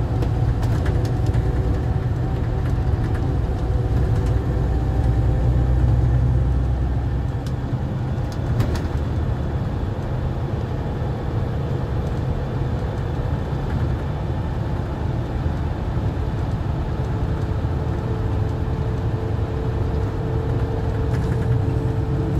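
The bus cabin rattles and clicks softly over bumps.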